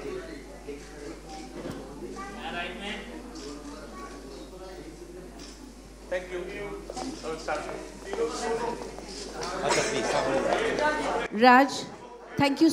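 A crowd chatters in a room nearby.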